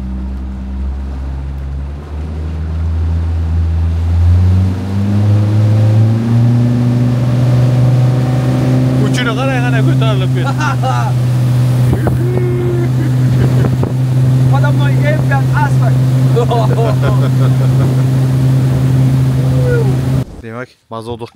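A boat engine revs up and roars steadily.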